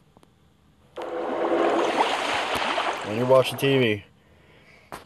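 Bubbles rush and gurgle underwater.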